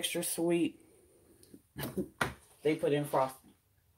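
A plastic spatula is set down on a hard surface.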